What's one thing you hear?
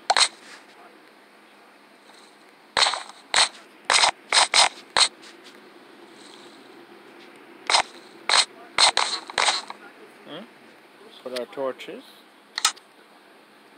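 Wooden blocks knock sharply as they are placed, one after another.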